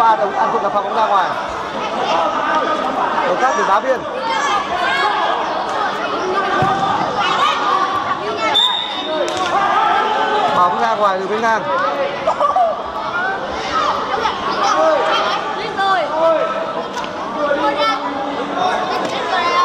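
A crowd of children shouts and cheers in an echoing indoor hall.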